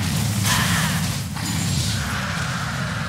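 Magical battle effects whoosh and crackle.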